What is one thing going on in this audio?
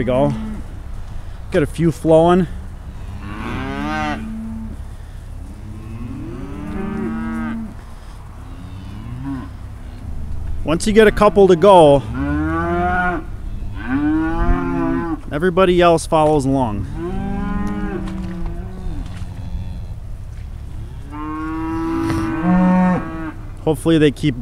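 Cattle moo and bellow loudly, close by, again and again.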